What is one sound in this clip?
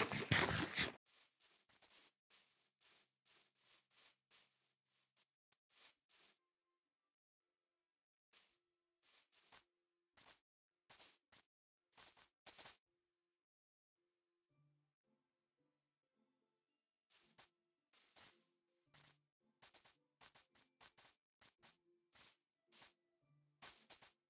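Footsteps tread softly on grass in short, quick steps.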